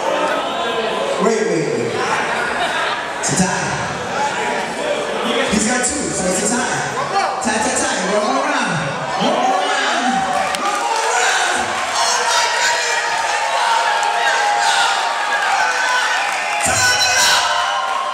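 A man talks with animation into a microphone over loudspeakers in a large echoing hall.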